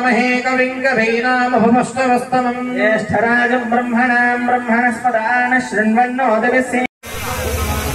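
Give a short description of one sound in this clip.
A man chants steadily into a microphone.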